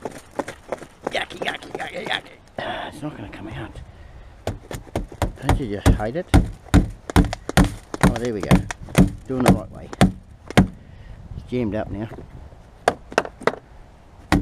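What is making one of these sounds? Plastic bottles crackle as they are handled.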